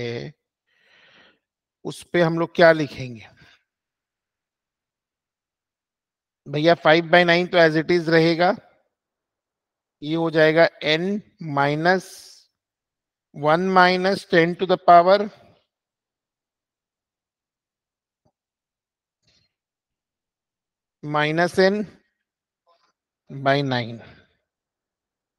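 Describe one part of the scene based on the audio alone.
A man explains calmly through a microphone, with pauses.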